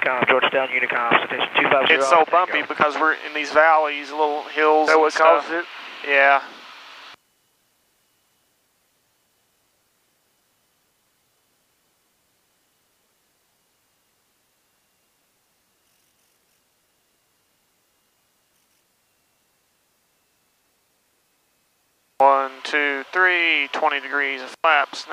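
A young man speaks calmly through a headset microphone.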